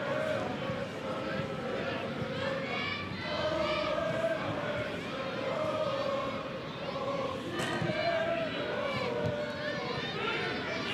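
A large crowd in an open stadium chants and sings steadily.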